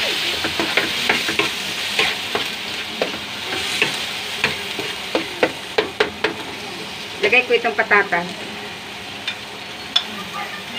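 A spatula scrapes and clacks against a frying pan.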